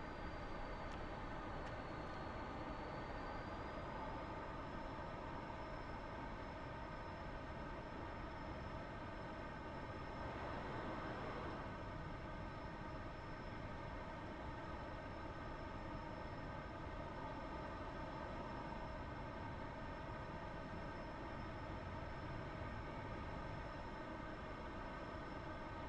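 A jet engine roars with a steady, droning whine.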